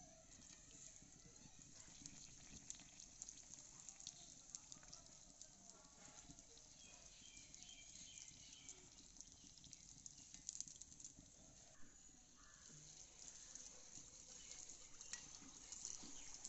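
A metal skimmer clinks against a pan.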